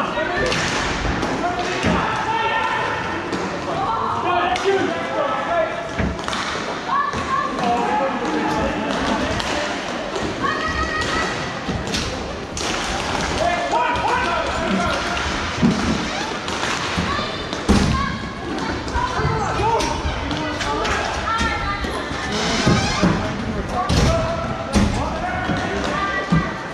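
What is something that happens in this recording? Sticks and a ball clack sharply on a hard floor.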